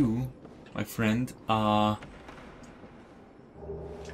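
A wooden chest lid creaks open.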